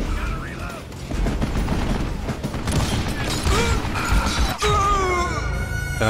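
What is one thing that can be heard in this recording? Revolver shots ring out in quick succession.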